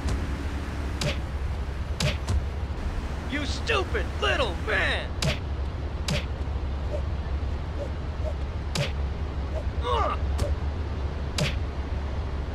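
Punches land with sharp, heavy thuds.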